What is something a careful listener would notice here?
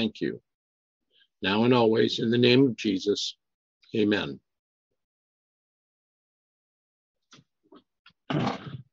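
A middle-aged man speaks calmly through an online call, pausing between phrases.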